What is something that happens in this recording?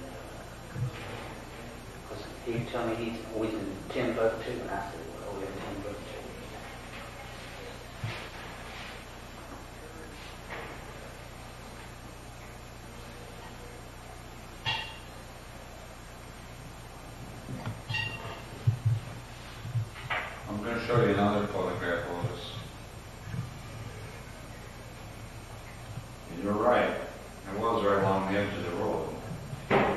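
Men talk calmly, heard through an old, hissy recording.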